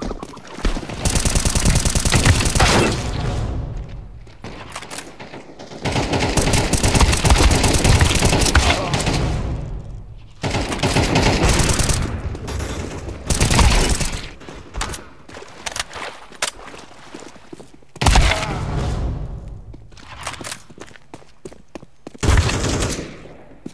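Rapid rifle gunfire rattles in loud bursts.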